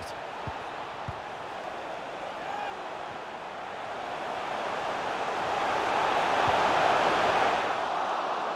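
A stadium crowd roars steadily, swelling louder toward the end.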